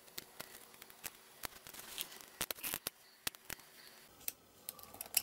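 A small blade scrapes and clicks against brittle plastic close by.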